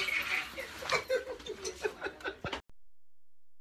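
A young woman laughs loudly up close.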